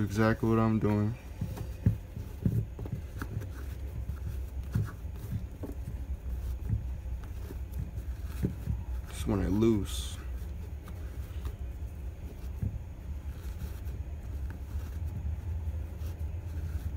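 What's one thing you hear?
Shoelaces rustle and tap softly as they are pulled and tied.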